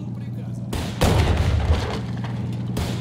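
A heavy explosion booms and rumbles away.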